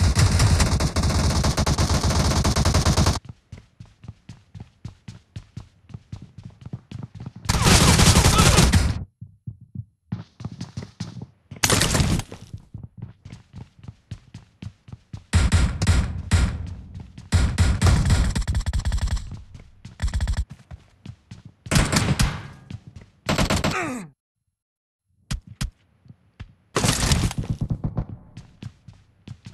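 Footsteps patter quickly on a hard metal floor.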